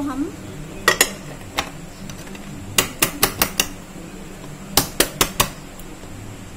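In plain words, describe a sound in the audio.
Hands tap on a metal baking tin with sharp knocks.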